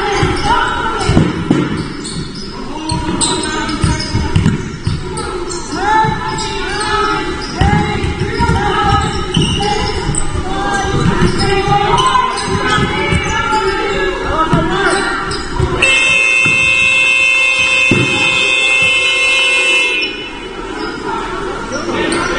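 A basketball thuds as it bounces on the floor.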